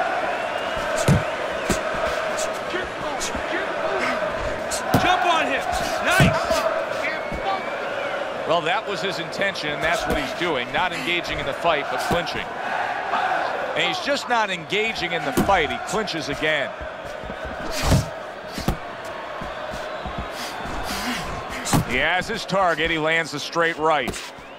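A crowd murmurs and cheers steadily.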